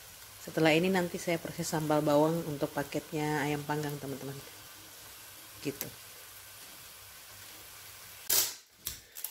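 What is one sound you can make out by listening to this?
Food sizzles and hisses in a hot pan.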